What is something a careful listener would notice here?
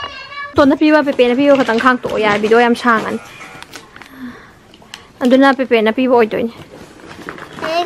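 Wrapping paper crinkles and tears.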